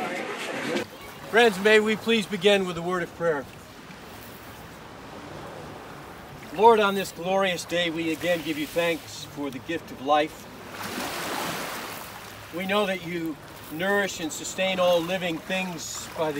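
An elderly man reads out calmly nearby.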